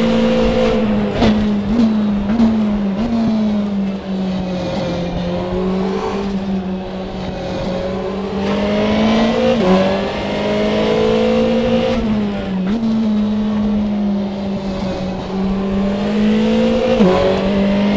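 A racing car engine drops in pitch and revs back up through gear changes.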